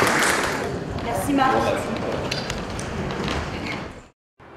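A second young woman speaks through a microphone and loudspeakers.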